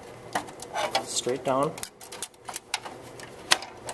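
A circuit board clicks into a slot.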